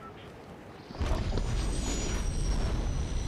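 A loud rushing wind whooshes as a glider dives.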